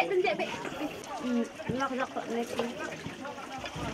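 Water pours from a bowl into a pot.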